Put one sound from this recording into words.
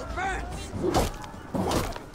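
A blade strikes with a heavy thud.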